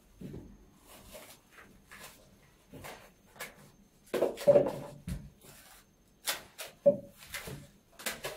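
A plastic bowl knocks and scrapes on a mat.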